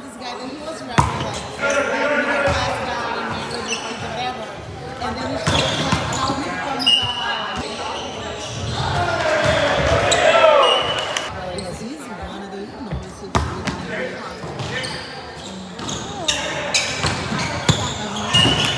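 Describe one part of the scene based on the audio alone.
A volleyball is hit with sharp slaps.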